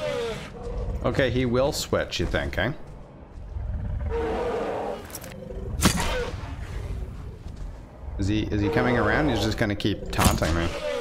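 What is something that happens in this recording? A large creature bellows with a wavering cry.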